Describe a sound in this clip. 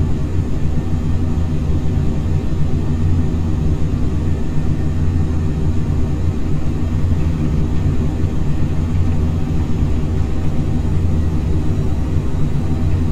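A jet engine roars steadily from inside a cockpit.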